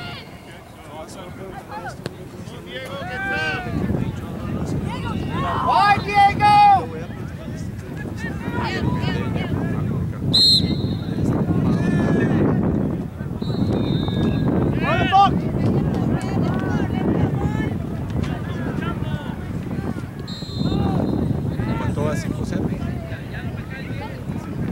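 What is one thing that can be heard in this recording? Adult spectators call out and cheer from the sideline.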